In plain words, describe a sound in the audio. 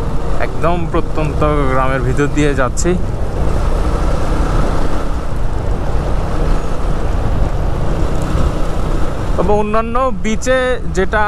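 Wind rumbles against the rider.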